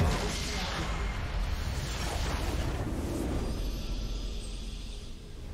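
A loud game explosion bursts and rumbles away.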